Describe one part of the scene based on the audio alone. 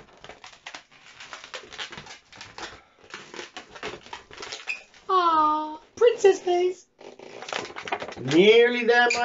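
Rubber balloons squeak as they are twisted.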